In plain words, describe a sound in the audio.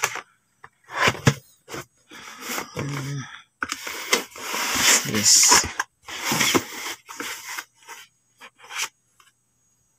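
A cardboard box scrapes and thumps as it is handled.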